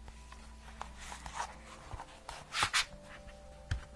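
Pages of a book rustle close to a microphone.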